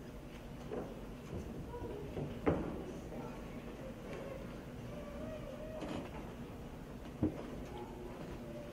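A choir of young voices sings softly in a large echoing hall.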